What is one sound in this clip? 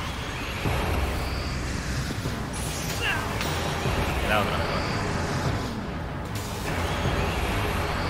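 Game music and battle effects play with booming blasts.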